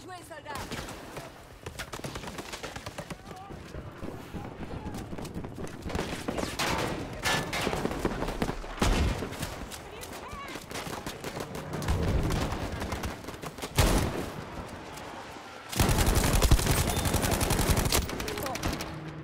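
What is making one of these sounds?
A gun fires in rapid bursts, loud and close.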